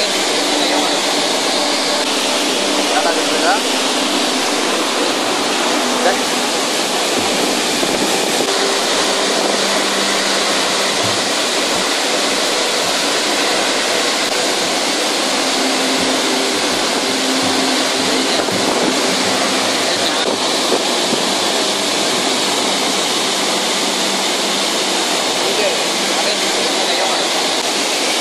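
A waterfall roars loudly and steadily.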